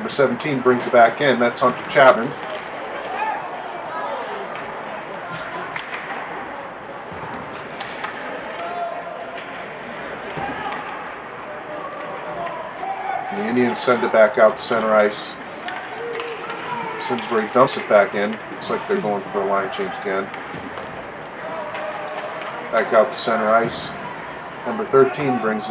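A crowd of spectators shouts and cheers in an echoing rink.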